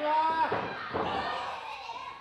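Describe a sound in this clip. A kick thuds against a wrestler's body.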